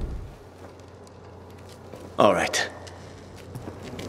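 Footsteps crunch on leaves and twigs.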